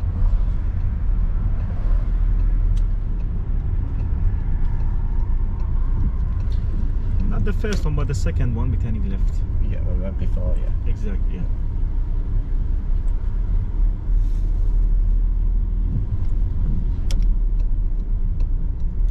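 A car engine hums steadily with road rumble inside the car.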